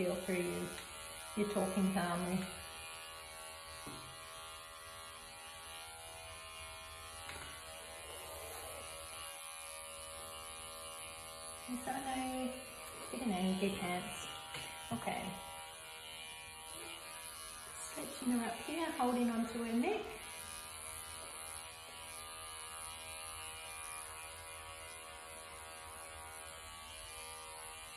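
Electric clippers buzz steadily.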